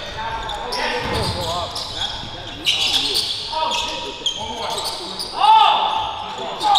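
Sneakers squeak sharply on a hard court in an echoing gym.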